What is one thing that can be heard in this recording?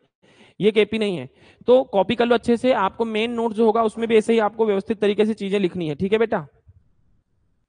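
A man explains calmly into a close microphone.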